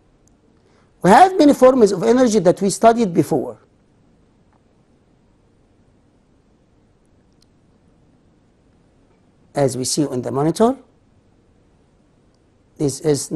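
A middle-aged man speaks calmly into a close microphone, in short bursts with pauses.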